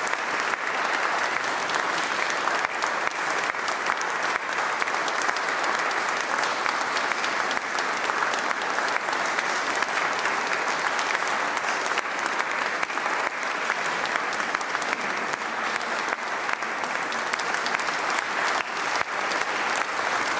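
An audience claps steadily in a large echoing hall.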